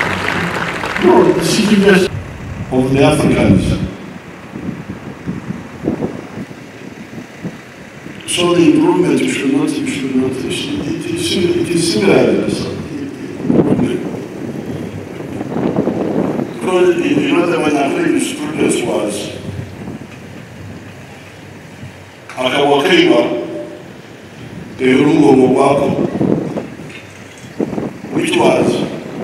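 An elderly man speaks slowly and firmly into a microphone over loudspeakers outdoors.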